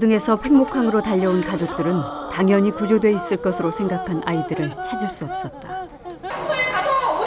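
A woman wails and sobs loudly up close.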